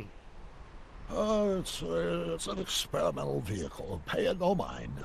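An elderly man answers hesitantly.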